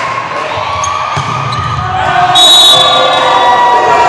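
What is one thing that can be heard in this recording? A volleyball is struck hard with a smack.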